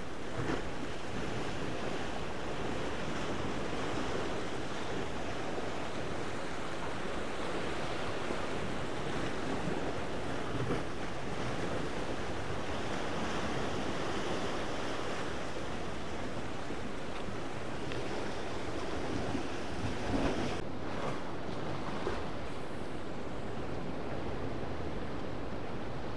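Waves wash and splash against rocks nearby, outdoors.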